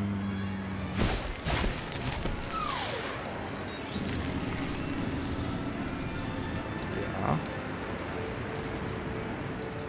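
Video game magic effects chime and sparkle.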